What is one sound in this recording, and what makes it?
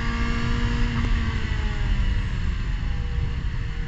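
A racing car engine drops in pitch as the car slows for a corner.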